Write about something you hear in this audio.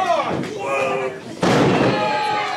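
A wrestler slams heavily onto the ring mat with a loud thud.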